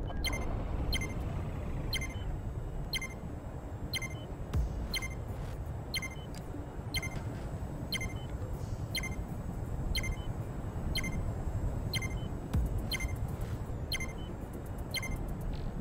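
A countdown timer beeps sharply once every second.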